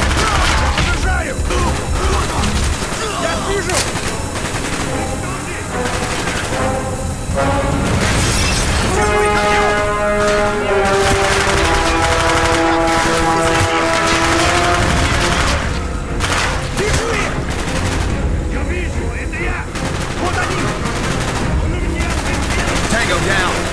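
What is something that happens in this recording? Rapid gunfire bursts ring out in an echoing interior.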